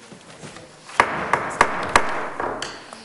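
A gavel bangs sharply on a table.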